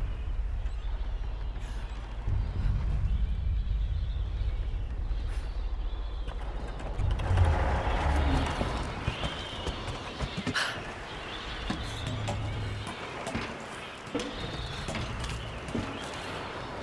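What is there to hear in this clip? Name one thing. Footsteps thud on creaking wooden planks.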